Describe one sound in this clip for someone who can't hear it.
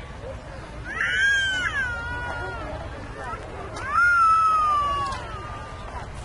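A young voice nearby calls out loudly.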